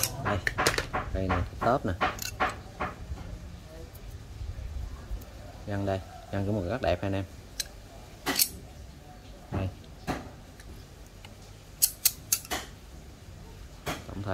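Metal pliers click and clink as they are handled.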